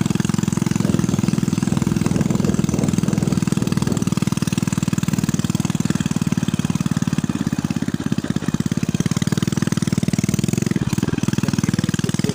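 A small motorcycle engine hums as the bike rides along.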